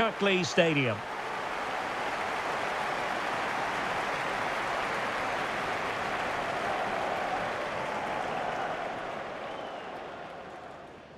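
A large crowd cheers and roars in a stadium.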